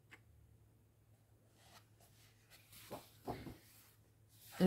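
A paper page is turned with a soft rustle.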